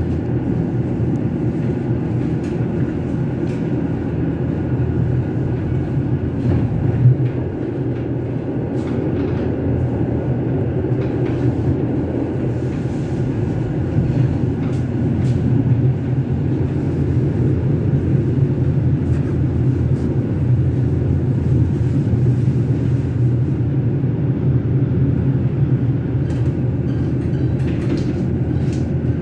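Wheels clatter over rail joints and switches.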